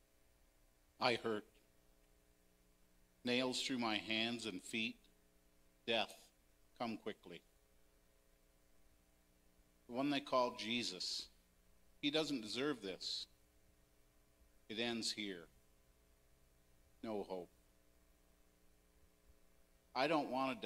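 A man speaks slowly into a microphone over loudspeakers in a large echoing hall, with long pauses.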